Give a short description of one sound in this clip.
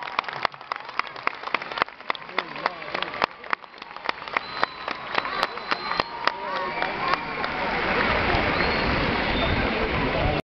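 A crowd cheers and shouts, growing louder.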